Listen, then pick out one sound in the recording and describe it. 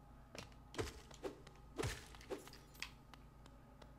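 Sharp video game hit and slash effects ring out.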